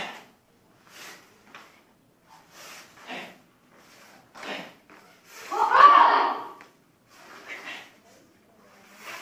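A man calls out short loud commands in an echoing hall.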